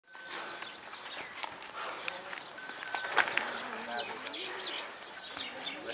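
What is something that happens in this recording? A bull's hooves thud on dirt as it walks.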